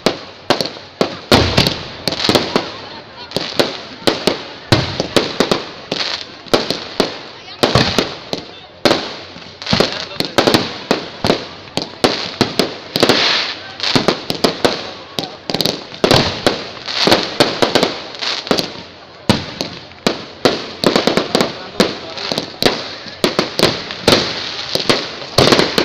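Fireworks crackle and fizz in the air.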